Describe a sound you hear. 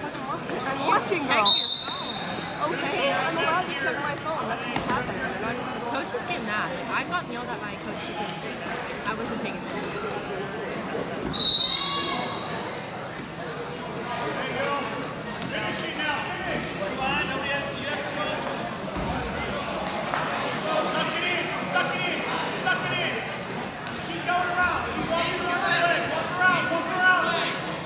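A crowd of young people chatters and calls out in a large echoing gym.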